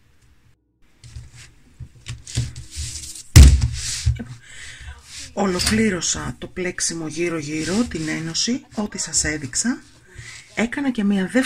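Fingers rub and brush over thick knitted fabric.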